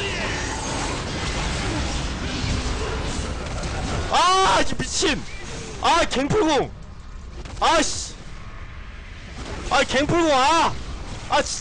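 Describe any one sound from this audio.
Spell effects whoosh and crackle in a fast-paced fight.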